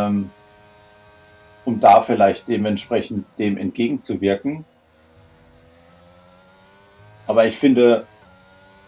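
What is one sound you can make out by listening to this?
A racing car engine whines steadily and slowly rises in pitch.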